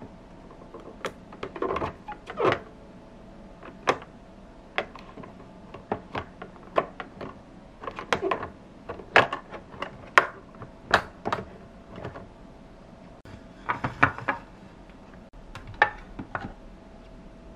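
Plastic toy parts click and clack as hands handle them.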